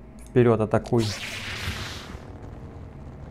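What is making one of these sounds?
A lightsaber ignites with a crackling hum.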